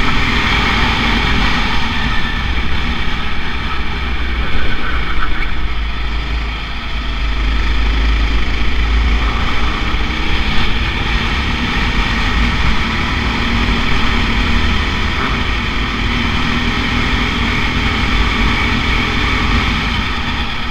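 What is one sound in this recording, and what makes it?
A kart engine buzzes loudly and close, revving up and down through the turns.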